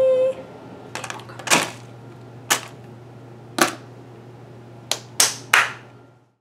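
Slime squelches and slaps against a bin lid as hands drop it.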